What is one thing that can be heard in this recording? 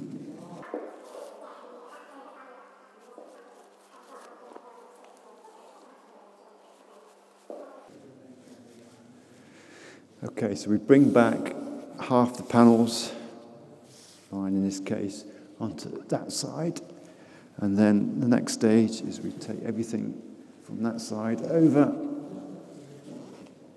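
Nylon fabric rustles softly as hands smooth it on the floor.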